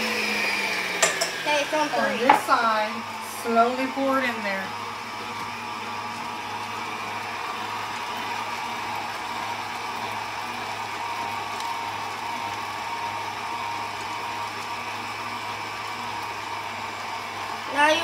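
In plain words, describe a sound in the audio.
A stand mixer hums steadily as it runs.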